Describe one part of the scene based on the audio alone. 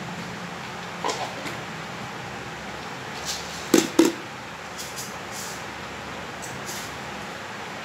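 Paper rustles and crinkles under hands.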